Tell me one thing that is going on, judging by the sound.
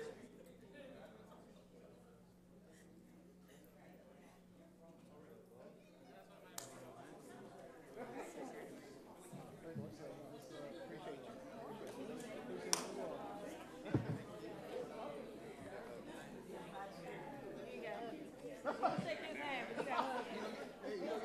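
A crowd of adults chatters in a large echoing hall.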